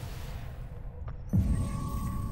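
A rifle fires a loud, booming shot.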